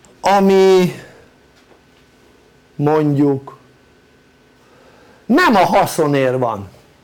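An older man speaks slowly and calmly in short phrases.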